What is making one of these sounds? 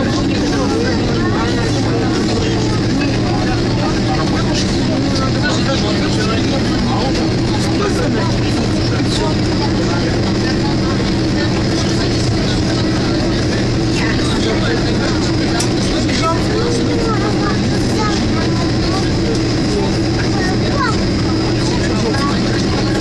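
An airliner's engines hum and rumble steadily as it taxis, heard from inside the cabin.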